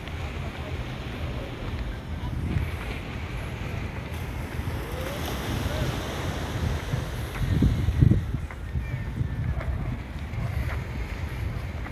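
Wind buffets outdoors in low gusts.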